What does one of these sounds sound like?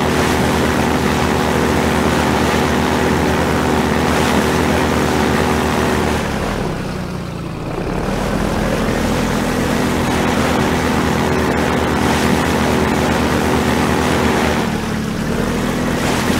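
A boat engine drones steadily, rising and dipping in pitch.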